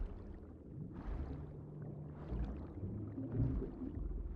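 Tall grass rustles in the wind.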